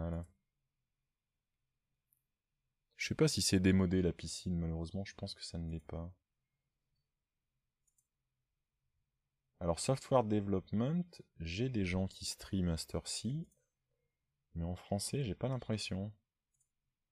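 A middle-aged man speaks calmly into a close microphone, in short bursts with pauses.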